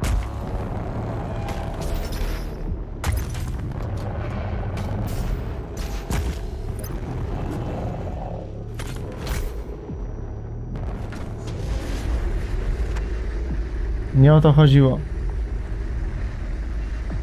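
A deep game soundtrack rumbles steadily.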